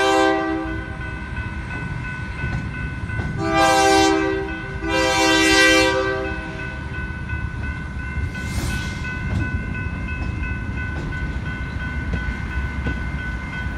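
A freight train rumbles and clatters past.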